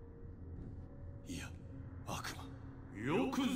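A young man cries out in shock.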